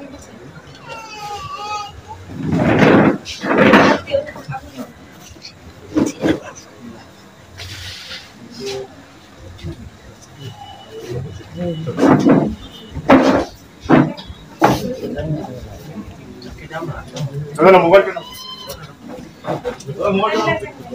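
Men and women talk and murmur nearby.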